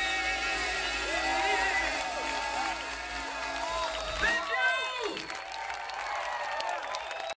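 A crowd cheers and claps outdoors.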